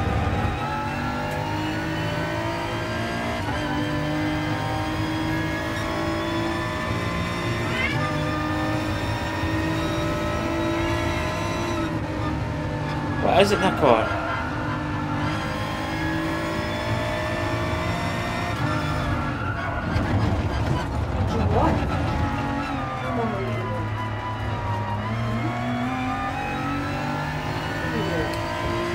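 A racing car engine roars steadily, rising and falling in pitch as it shifts gears and brakes.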